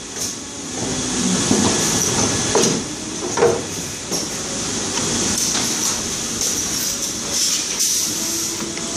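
A machine hums and clatters steadily.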